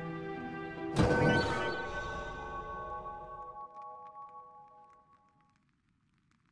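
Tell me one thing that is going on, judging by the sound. A game menu plays a resonant chime as a panel opens.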